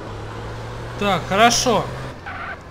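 Car tyres screech briefly.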